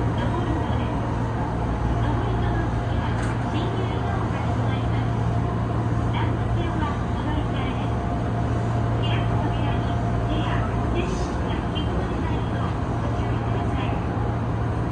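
A train motor hums steadily as the train rolls along the tracks.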